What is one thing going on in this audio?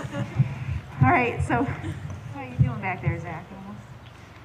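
A woman speaks into a microphone outdoors.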